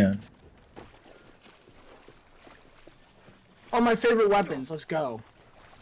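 Water splashes softly.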